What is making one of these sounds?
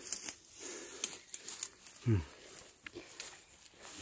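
Leaves and stalks rustle as a man pushes through dense plants.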